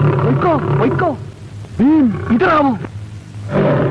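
A man shouts loudly and urgently nearby.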